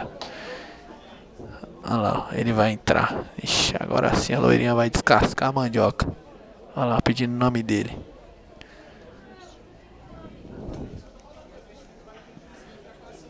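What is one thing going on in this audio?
A crowd murmurs in the background of a large echoing hall.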